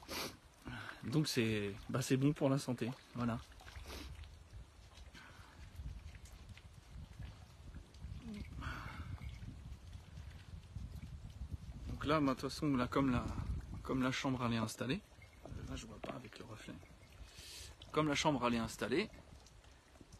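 A man talks calmly, close up.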